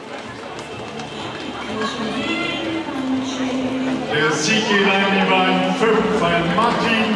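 A crowd of spectators cheers and shouts louder and louder as runners race.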